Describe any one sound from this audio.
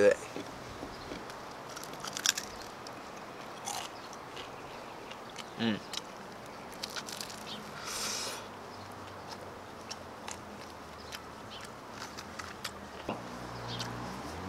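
A young man chews and smacks his lips while eating.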